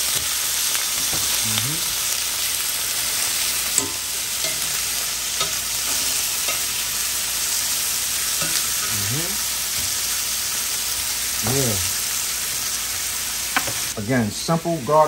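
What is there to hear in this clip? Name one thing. Chicken sizzles steadily in a hot pan.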